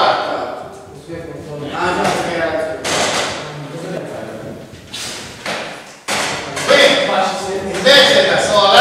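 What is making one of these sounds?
An elderly man lectures nearby.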